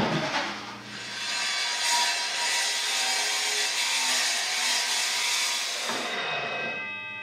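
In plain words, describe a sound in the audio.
A metal-cutting chop saw cuts through square steel tubing with a harsh screech.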